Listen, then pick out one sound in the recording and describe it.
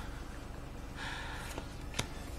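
Trading cards slide and rustle in hands.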